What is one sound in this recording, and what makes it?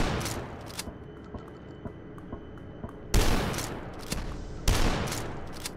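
A shotgun fires loudly with a booming blast.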